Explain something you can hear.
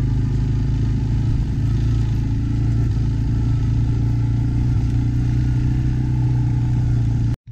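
A quad bike engine drones steadily.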